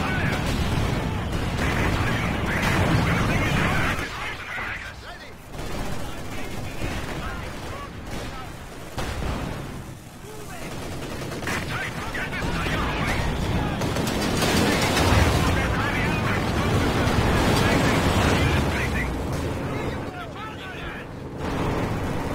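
Explosions boom and rumble across a battlefield.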